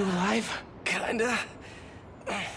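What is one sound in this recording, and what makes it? A man answers weakly.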